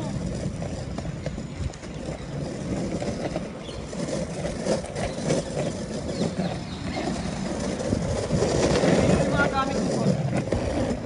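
Skateboard wheels rumble over rough pavement.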